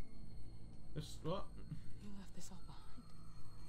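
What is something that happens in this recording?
A woman speaks quietly.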